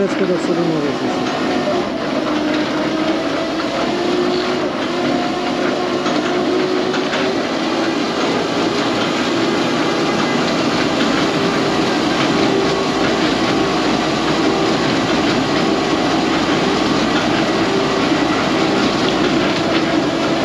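A truck engine rumbles and whines steadily close by.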